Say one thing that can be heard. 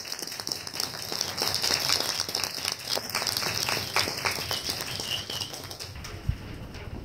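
An audience claps in an echoing room.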